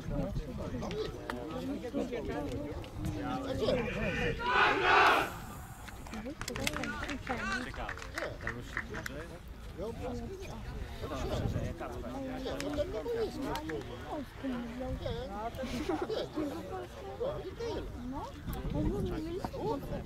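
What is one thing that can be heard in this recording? Men shout and call to each other outdoors on an open field.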